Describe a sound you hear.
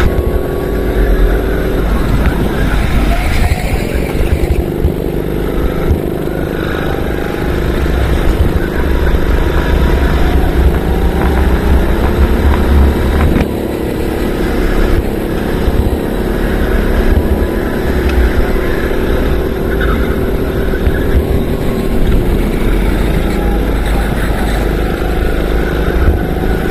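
A go-kart engine drones loudly close by, rising and falling in pitch as it speeds up and slows down.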